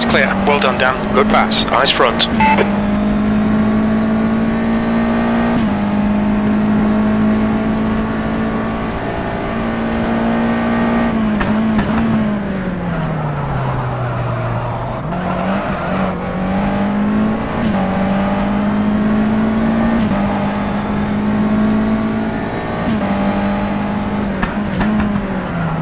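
A racing car engine roars loudly, revving up and down through gear changes.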